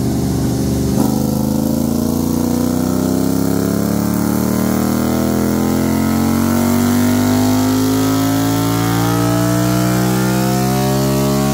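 A motorcycle engine revs up through the gears, rising in pitch again and again.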